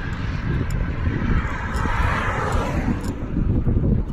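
A car drives past on the road nearby.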